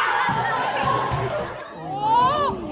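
Children chatter and shout excitedly close by.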